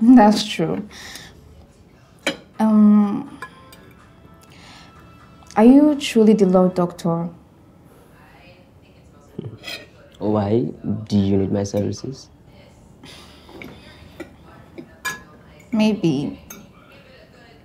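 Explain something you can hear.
A young woman speaks quietly and sadly nearby.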